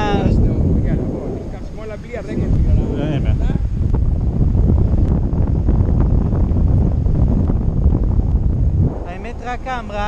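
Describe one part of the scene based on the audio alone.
A man talks with animation close by, over the wind.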